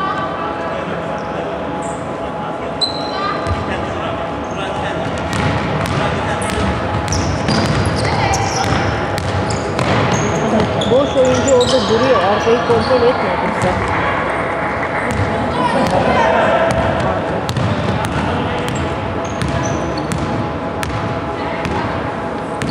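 Sneakers squeak sharply on a floor in a large echoing hall.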